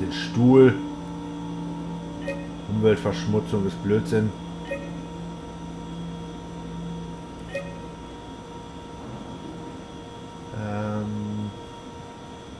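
Short electronic beeps and chirps sound from a computer interface.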